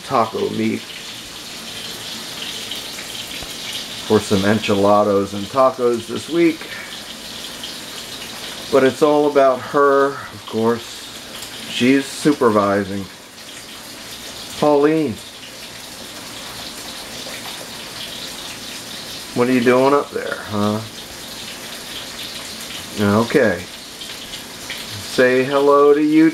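A cat meows loudly and repeatedly, close by.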